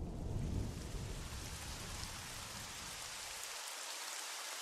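Thunder rumbles deeply and fades away.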